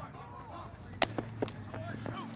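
A baseball smacks into a leather glove.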